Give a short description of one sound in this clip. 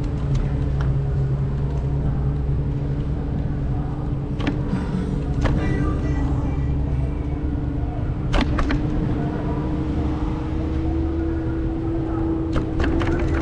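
Wind rumbles against the moving vehicle.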